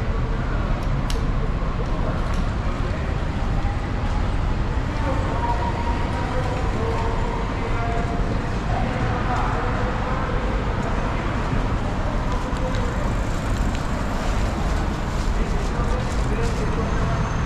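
Footsteps of passers-by tap on pavement.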